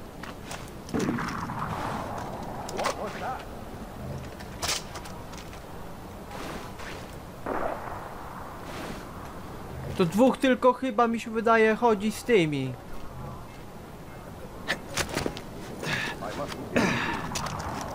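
A rifle fires with a sharp crack that echoes away.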